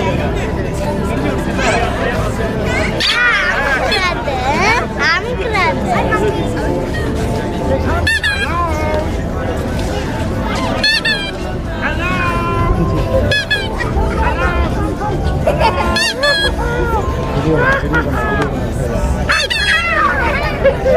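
A man speaks playfully, putting on a squeaky puppet voice.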